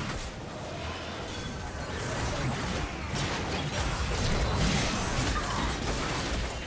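Game spell effects crackle and burst.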